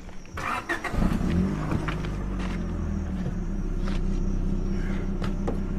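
A car engine starts and idles with a steady hum.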